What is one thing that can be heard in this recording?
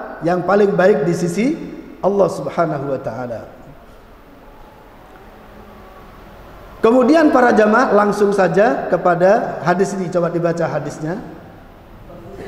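An elderly man speaks calmly and firmly through a microphone.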